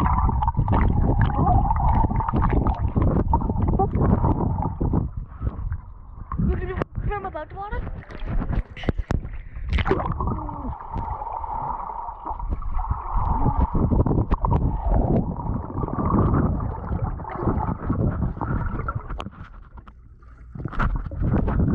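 Water churns and bubbles in a muffled rush underwater.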